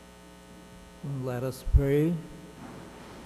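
An elderly man speaks briefly through a microphone in an echoing hall.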